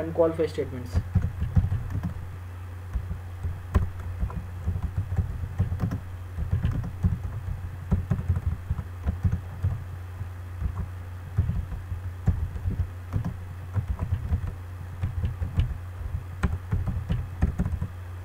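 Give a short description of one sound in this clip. Keys clatter on a keyboard as someone types in short bursts.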